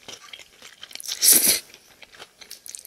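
A young woman slurps glass noodles close to a microphone.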